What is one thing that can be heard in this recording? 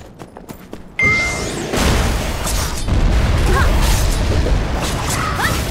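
Magic spells crackle and boom in a fight.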